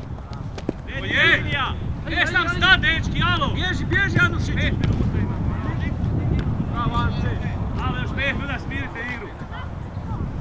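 Young men shout to each other from a distance across the field.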